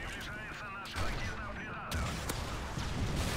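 Gunshots bang sharply a few times.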